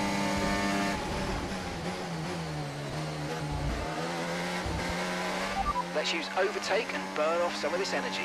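A racing car engine drops in pitch as the car brakes and downshifts.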